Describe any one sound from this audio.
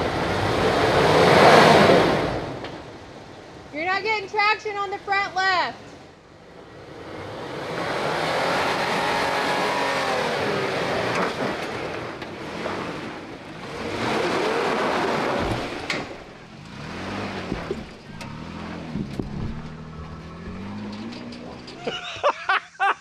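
A truck engine revs and labours.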